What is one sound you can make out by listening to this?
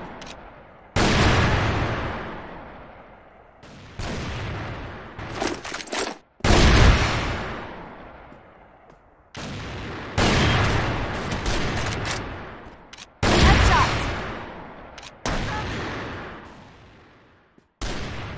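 A sniper rifle fires loud booming shots that echo and fade.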